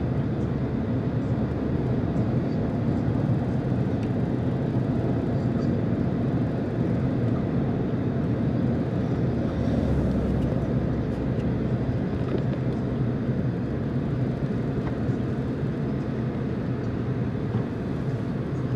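A car's engine hums steadily, heard from inside the car.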